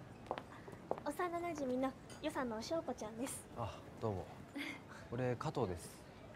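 A young woman speaks brightly.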